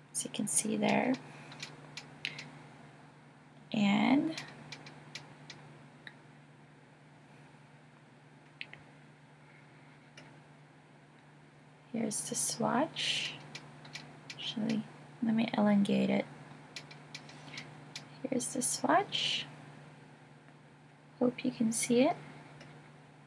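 A young woman talks calmly close to a microphone, in short bursts with pauses.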